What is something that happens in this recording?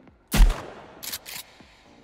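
A shotgun's pump slides back and forth with a clack.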